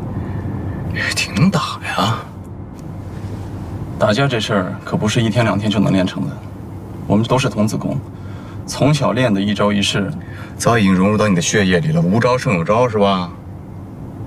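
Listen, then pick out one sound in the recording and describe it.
A second young man answers casually nearby.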